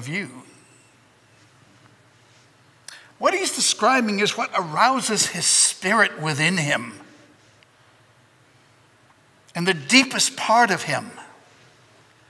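An older man speaks calmly into a microphone, with pauses.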